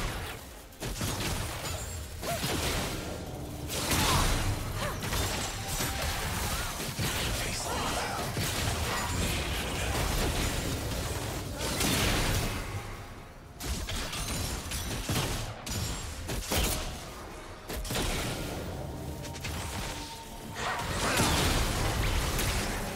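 Game spell effects whoosh and burst during a fast fight.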